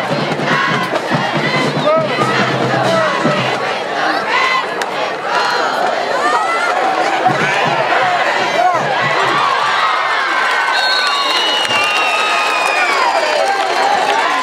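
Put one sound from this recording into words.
A large crowd cheers and shouts in an open-air stadium.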